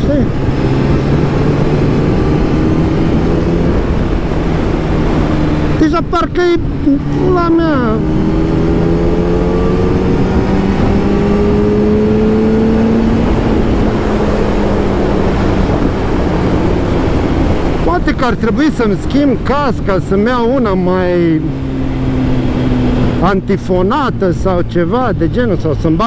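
A motorcycle engine hums steadily and shifts in pitch as the bike speeds up and slows.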